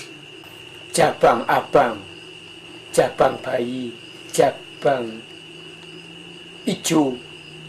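An elderly man speaks loudly in short bursts.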